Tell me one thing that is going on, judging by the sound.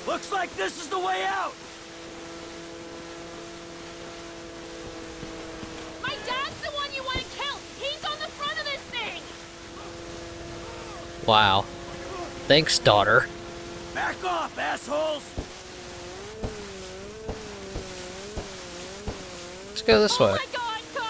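A jet ski engine hums steadily as it speeds across water.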